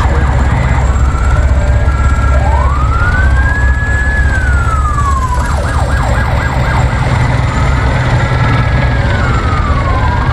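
A vehicle engine rumbles steadily while driving over rough ground.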